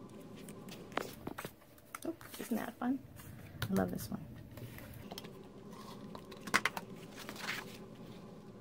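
Paper cards tap and flap as they are moved.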